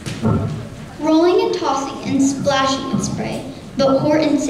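A child speaks out loudly in a large echoing hall.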